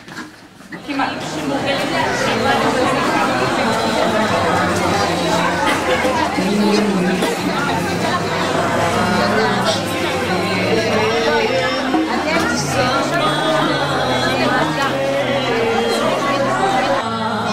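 A crowd of adults chatters indoors.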